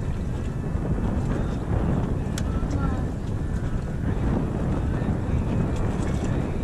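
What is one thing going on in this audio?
Wind buffets loudly against the boat outdoors.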